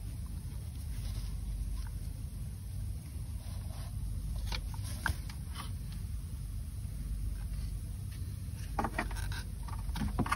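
Metal parts click and clink under a hand.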